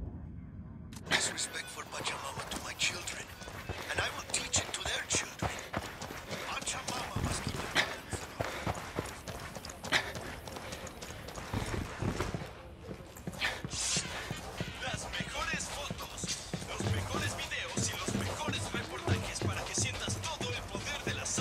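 Footsteps crunch quickly over dirt and gravel.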